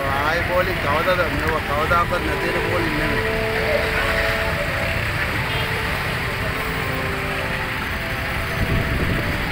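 Motorbike engines idle nearby.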